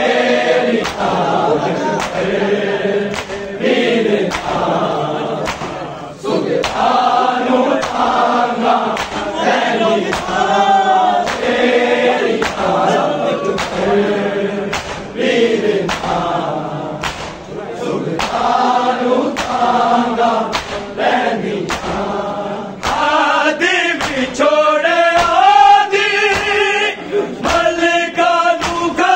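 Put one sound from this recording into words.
Bare hands beat rhythmically on chests.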